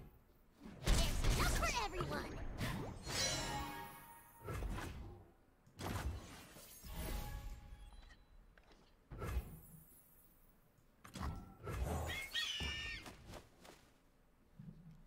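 Card game sound effects whoosh and chime.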